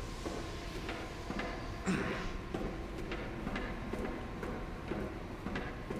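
Footsteps clang steadily on a metal grating walkway.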